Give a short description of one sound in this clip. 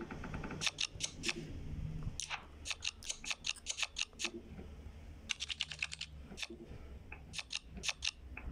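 Playing cards click and snap into place in quick bursts.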